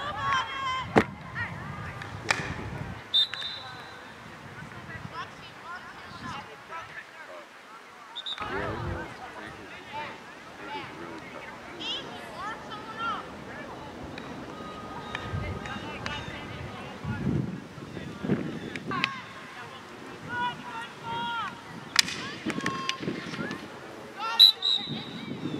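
Hockey sticks smack a ball with sharp cracks.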